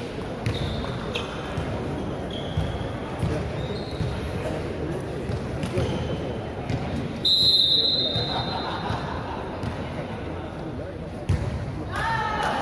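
A crowd murmurs and cheers throughout a large echoing hall.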